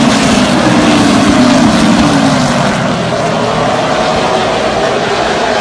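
Race car engines roar loudly around a dirt track outdoors.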